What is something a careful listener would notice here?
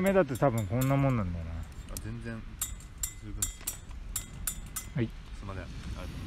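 Thin metal wires clink softly against a metal mug.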